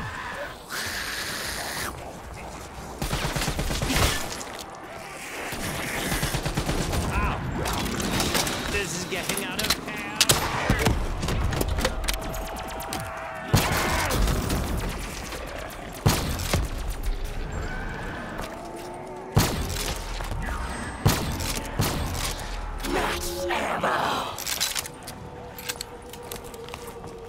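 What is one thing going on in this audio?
Gunfire bursts rapidly and loudly.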